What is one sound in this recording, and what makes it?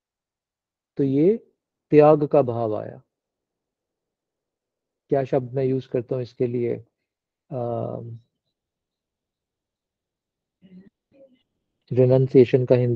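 A middle-aged man speaks calmly in bursts through an online call, with pauses.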